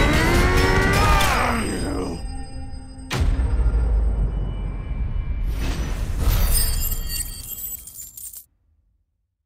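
A loud magical blast roars and crackles, then fades away.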